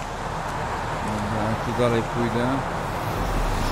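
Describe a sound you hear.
A young man speaks briefly into a close microphone.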